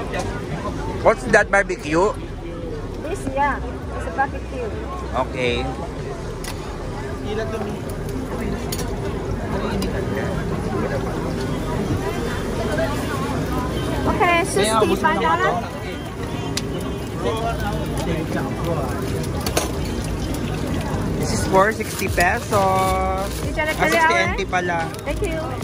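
A woman talks with a customer nearby.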